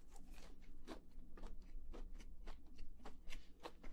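Chopsticks click against a plate.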